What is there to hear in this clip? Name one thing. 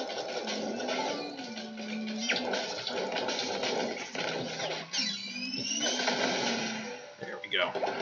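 Video game explosions burst and crackle in quick succession.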